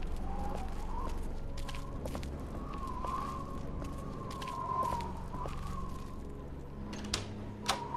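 Footsteps thud on a wooden floor at a steady pace.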